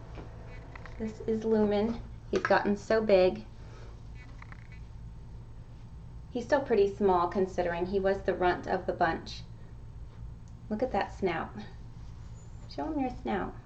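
A woman talks close by, in bursts with pauses.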